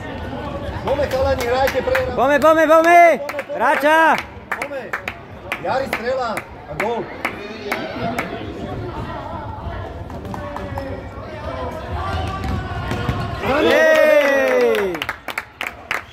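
Young players shout to each other across a large echoing hall.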